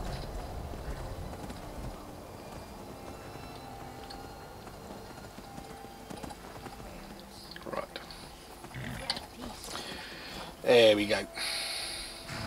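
Horse hooves clop on stone.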